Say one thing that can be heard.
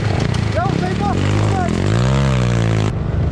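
A two-stroke enduro motorcycle revs up and climbs a dirt slope.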